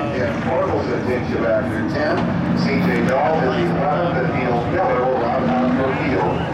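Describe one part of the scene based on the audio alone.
A man talks cheerfully close by.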